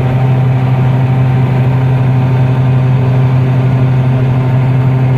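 A combine harvester's engine drones loudly and steadily from inside its cab.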